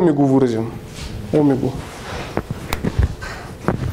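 A man talks in an echoing room.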